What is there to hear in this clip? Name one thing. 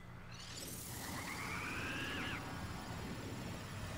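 An electric zap crackles and hums.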